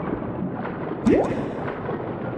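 A bubble pops with a rising gulp.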